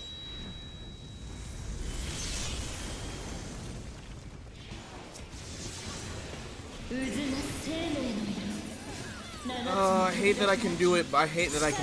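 Magical spell effects whoosh and shimmer.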